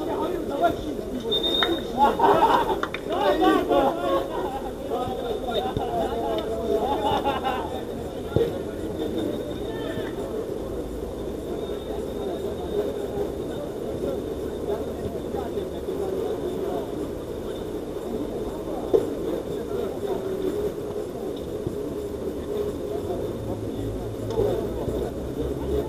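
A group of young men chat and call out to each other at a distance outdoors.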